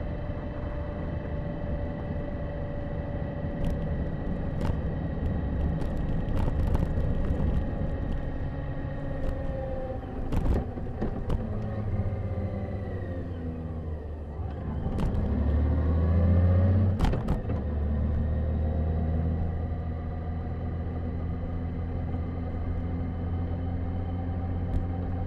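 A motorcycle engine hums steadily, dropping in pitch as the bike slows for a bend and rising again as it speeds up.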